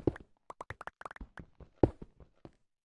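Stone blocks crack and break apart.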